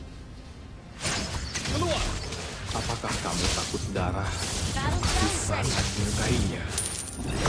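Magic blasts whoosh and clash in a hectic fantasy battle.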